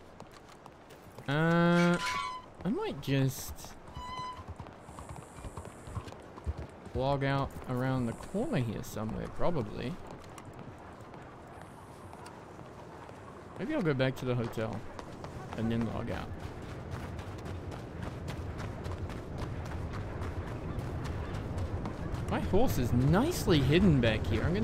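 Footsteps walk on stone paving.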